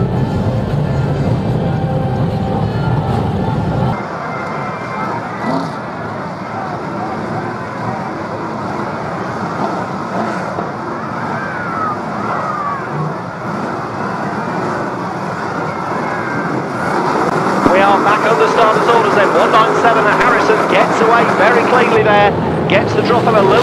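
Racing car engines roar loudly.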